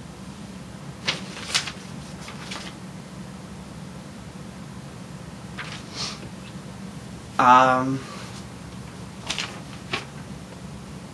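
Paper rustles and crinkles in a young woman's hands.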